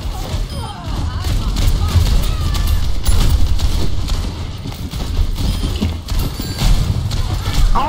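Keyboard keys and a mouse click quickly.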